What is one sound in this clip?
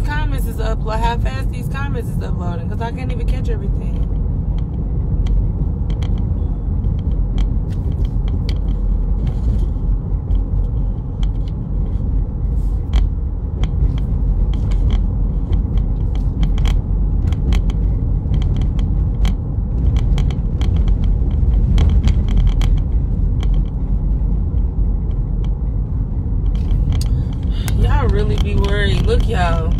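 A young woman talks casually, close to a phone microphone.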